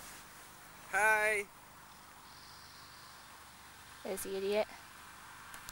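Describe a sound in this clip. A young man speaks briefly and calmly nearby.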